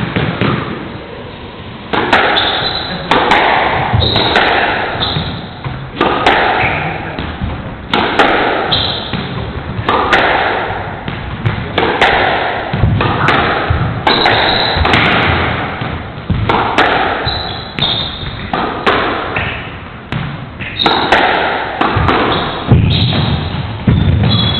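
A squash ball smacks hard against the walls again and again, echoing around an enclosed court.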